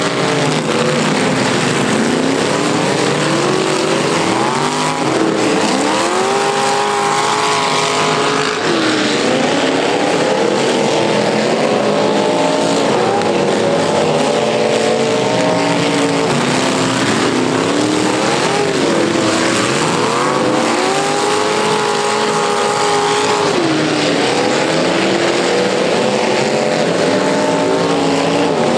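Car engines roar and rev loudly outdoors.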